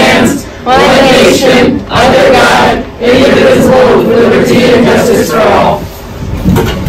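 A group of young people speaks together in unison.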